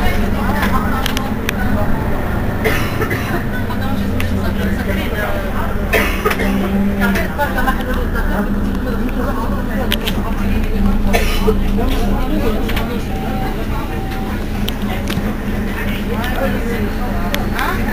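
A bus engine idles with a low steady rumble close by.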